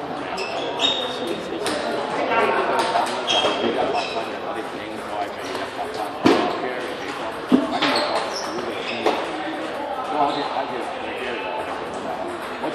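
Ping-pong balls click on tables and paddles throughout a large echoing hall.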